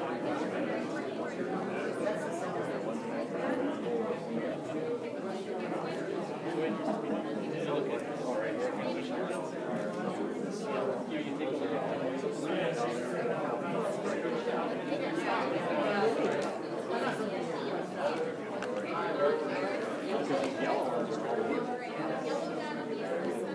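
A crowd of adults chatters nearby in an echoing hall.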